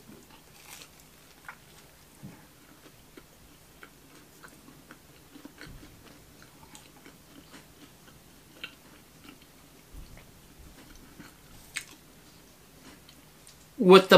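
A man chews crunchy pizza crust.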